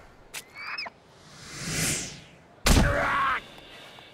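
A body thuds onto the ground.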